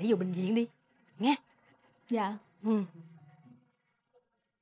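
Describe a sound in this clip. A woman speaks softly and with feeling, close by.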